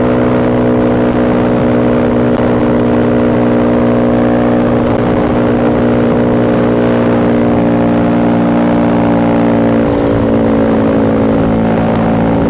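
A motorcycle engine hums steadily as it cruises along, its pitch dropping slightly near the end.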